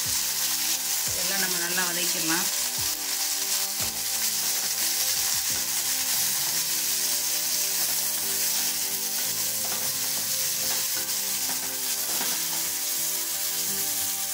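A spatula scrapes and stirs food in a pan.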